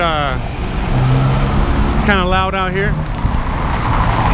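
A pickup truck engine rumbles as it drives along the street.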